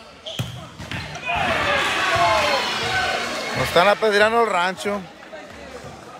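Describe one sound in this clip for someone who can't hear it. A crowd cheers loudly in an echoing indoor gym.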